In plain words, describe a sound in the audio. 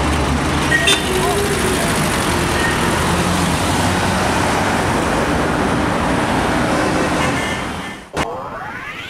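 City traffic rumbles steadily along a busy street.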